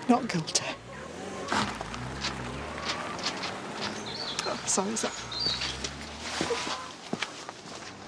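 A middle-aged woman speaks in an upset voice, close by.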